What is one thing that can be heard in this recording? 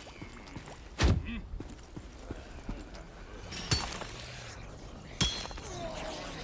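Sharp impacts of a fantasy combat game sound as a character attacks.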